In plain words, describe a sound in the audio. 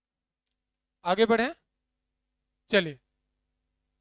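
A man speaks briefly, close by.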